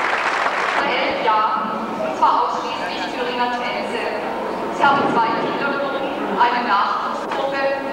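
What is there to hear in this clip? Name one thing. A woman reads aloud calmly into a microphone, heard through loudspeakers.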